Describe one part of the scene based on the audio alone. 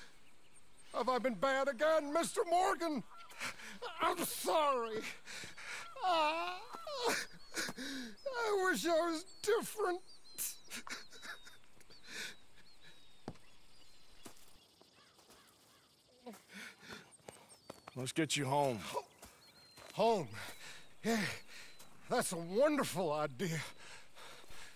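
A middle-aged man speaks softly and sadly, close by.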